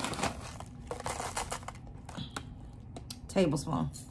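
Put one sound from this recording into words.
Dried seeds pour and rattle into a glass cup.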